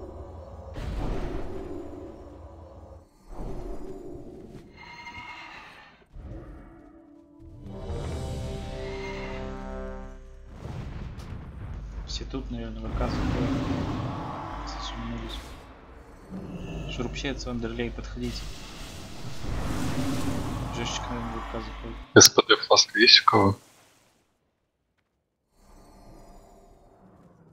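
Magic spells whoosh and crackle amid a fight.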